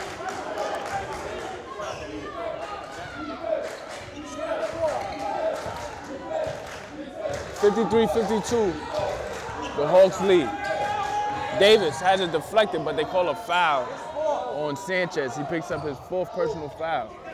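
A crowd of spectators chatters and calls out in an echoing hall.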